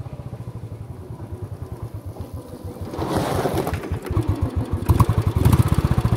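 A motorcycle approaches, its engine growing louder.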